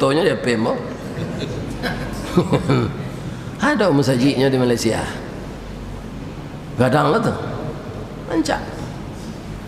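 A middle-aged man preaches with animation into a microphone.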